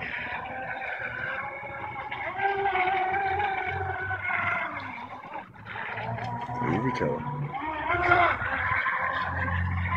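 A small model boat motor whines high and buzzing as the boat speeds across the water.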